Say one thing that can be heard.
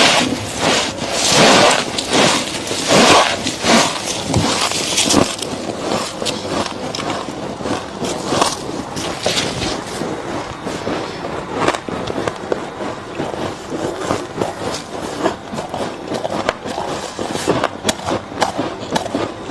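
A young woman crunches loudly on ice close to a microphone.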